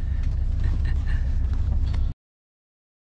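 A bus engine rumbles low and steady.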